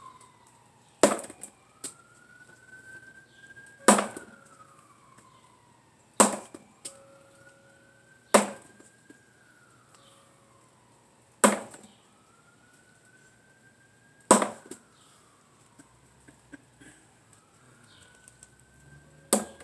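A sword strikes a wooden pell with sharp knocks.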